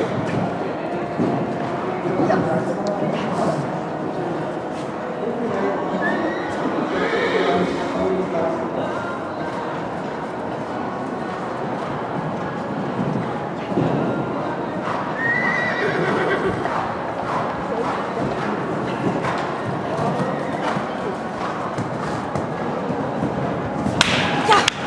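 A horse canters with soft hoof thuds on sand in a large echoing hall.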